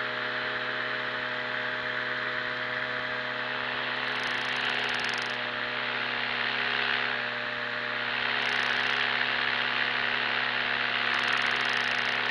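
Wind rushes steadily past in flight.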